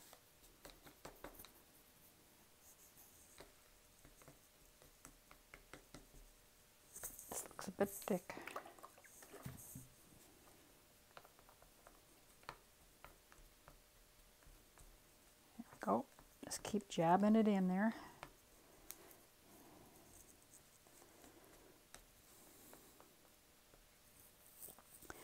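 A stick scrapes and taps softly inside a plastic cup.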